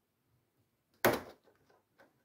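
A plastic part snaps loose with a sharp click.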